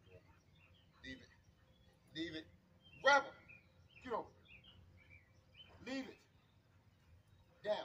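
A dog barks in the distance, outdoors.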